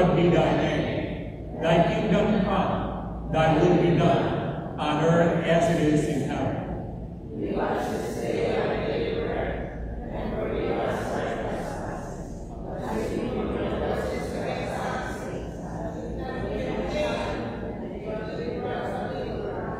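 A man chants a prayer through a loudspeaker in a large echoing hall.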